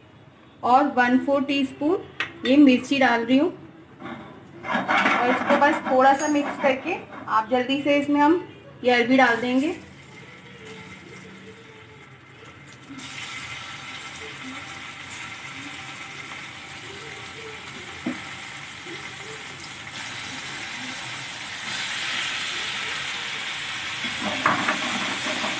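Hot oil sizzles steadily in a frying pan, growing louder as food is added.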